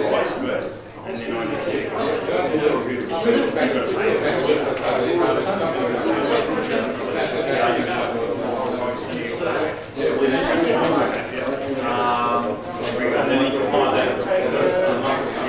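Several men talk among themselves in a large, echoing hall.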